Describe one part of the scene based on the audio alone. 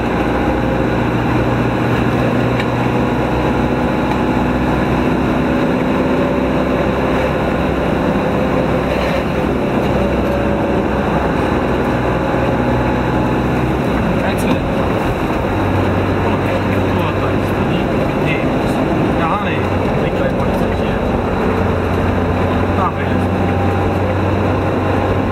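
Tyres roll and hum on the road surface.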